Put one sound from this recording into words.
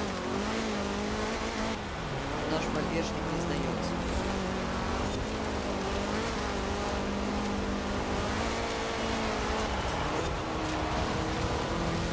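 Tyres crunch and slide on loose gravel.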